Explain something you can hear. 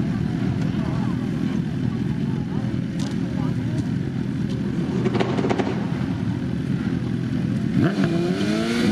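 Two drag racing motorcycles idle on the start line.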